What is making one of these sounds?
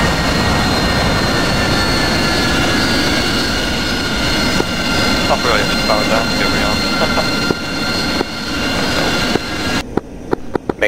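A jet engine whines steadily at idle.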